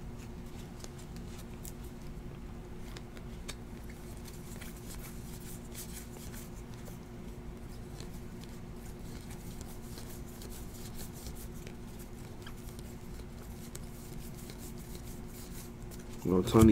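Trading cards rustle and slap softly as hands flip through them.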